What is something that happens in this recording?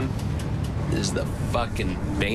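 A man speaks in a low voice, close by.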